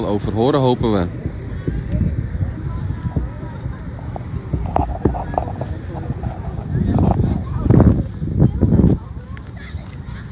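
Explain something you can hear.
A crowd of men and women talks and calls out outdoors.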